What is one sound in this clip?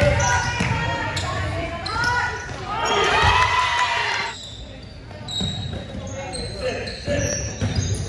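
Sneakers squeak sharply on a wooden floor in a large echoing hall.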